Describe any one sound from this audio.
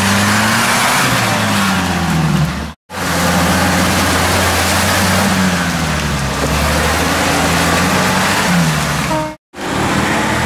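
A UAZ-469 off-road vehicle's engine revs as its wheels churn through deep mud.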